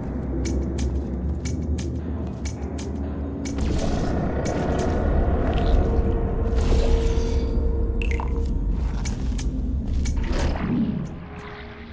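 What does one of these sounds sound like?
Thick liquid gushes and splatters steadily.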